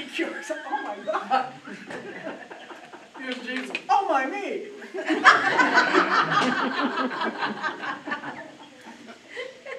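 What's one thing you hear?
An elderly man laughs heartily.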